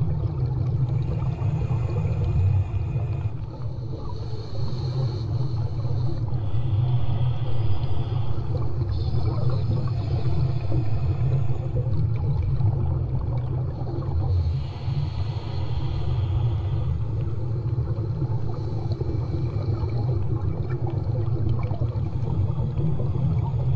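Water splashes and gurgles through a snorkel tube close by.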